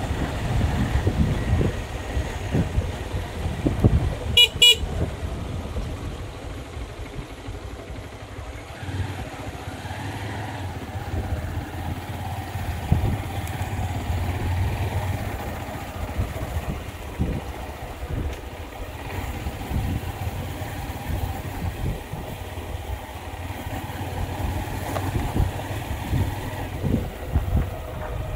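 Tyres crunch over a bumpy dirt road.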